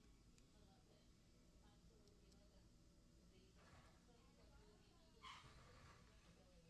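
A plastic mesh grille rustles and clicks as it is handled.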